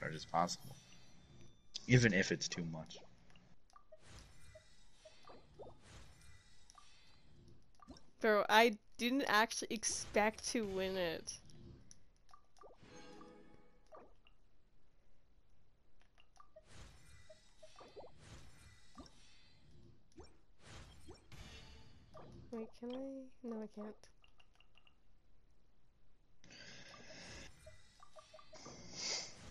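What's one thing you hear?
Soft electronic menu clicks and chimes sound now and then.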